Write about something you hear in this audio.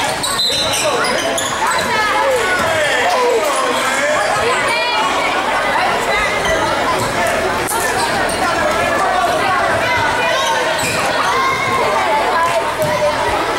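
A crowd chatters and cheers in a large echoing gym.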